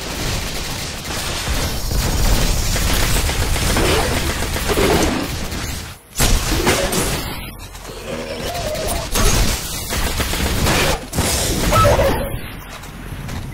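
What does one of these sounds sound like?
Gunfire crackles and bursts in rapid volleys.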